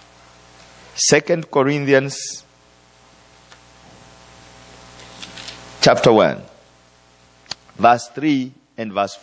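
A man preaches with emphasis through a microphone in a room with some echo.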